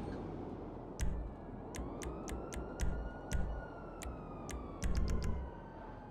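Short menu clicks tick one after another.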